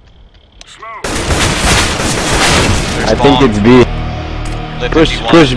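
Rifle shots fire in rapid bursts.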